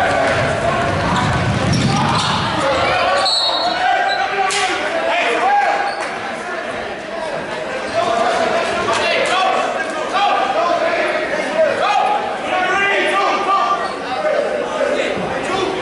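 Spectators chatter and call out in a large echoing gym.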